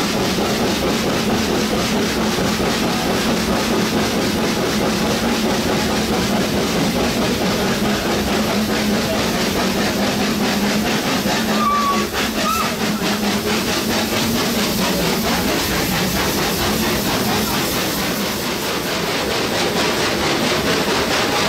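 A small train rumbles and clatters steadily along its track.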